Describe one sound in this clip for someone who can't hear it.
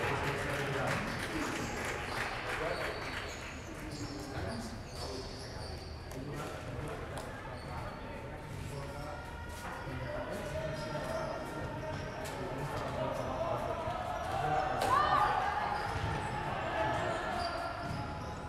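Table tennis balls click and bounce on tables and paddles in a large echoing hall.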